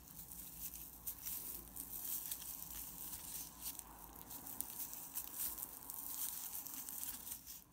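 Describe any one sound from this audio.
A crochet hook rubs and clicks softly against yarn.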